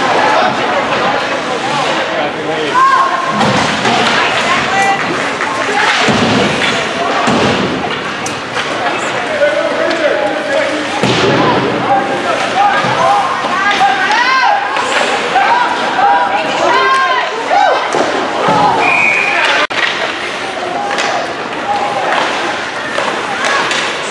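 Skates scrape and carve across the ice.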